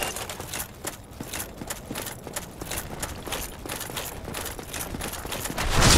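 Footsteps clatter on stone.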